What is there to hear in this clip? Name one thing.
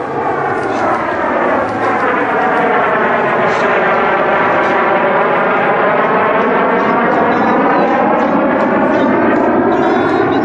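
A twin-engine jet fighter roars overhead in a low pass, its roar rising and falling in pitch.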